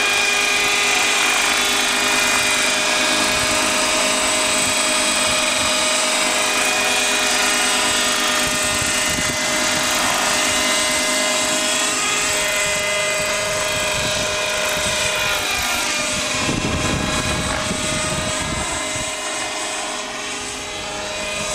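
A model helicopter's engine whines loudly and steadily, shifting in pitch as it flies.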